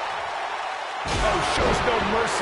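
A heavy body slams onto a wrestling mat with a thud.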